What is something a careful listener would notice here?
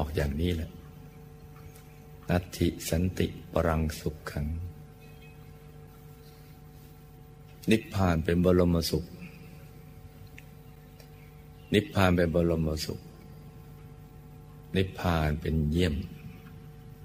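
An elderly man speaks calmly and slowly, in bursts with long pauses.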